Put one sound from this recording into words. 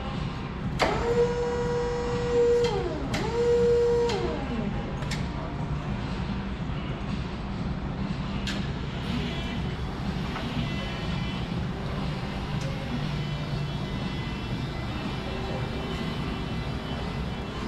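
An electric forklift motor whirs steadily as it drives.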